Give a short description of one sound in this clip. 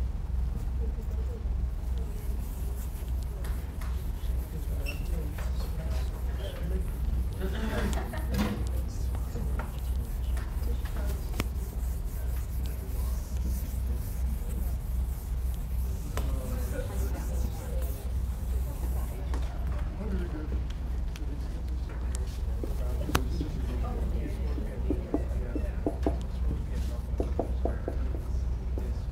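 A man lectures in a large room, heard from a distance.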